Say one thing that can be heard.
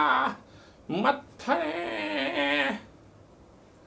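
A middle-aged man shouts with animation close by.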